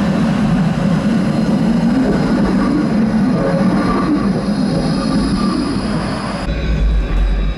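A tram rolls up and passes close by.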